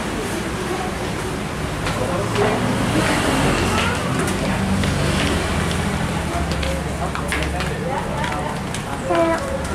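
People talk quietly at tables nearby.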